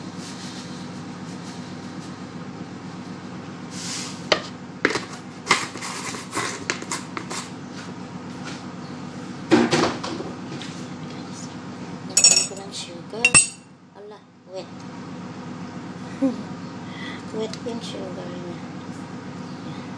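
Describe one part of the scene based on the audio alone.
A spoon clinks against a glass mug.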